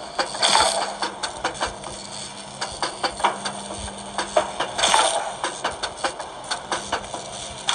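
Electronic zapping effects from a game play in short bursts.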